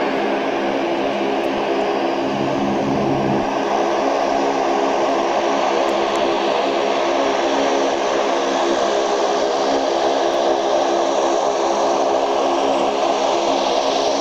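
Turboprop engines drone loudly with a steady whine as a plane taxis close by.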